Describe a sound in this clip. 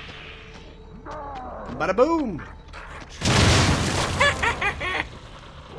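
A young man shouts and exclaims with excitement close to a microphone.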